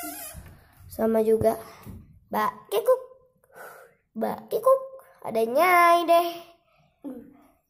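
A young girl talks and sings playfully close by.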